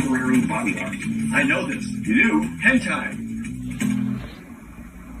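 A man talks through a television speaker.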